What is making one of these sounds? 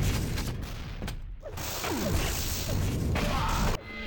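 A rocket explodes with a heavy boom.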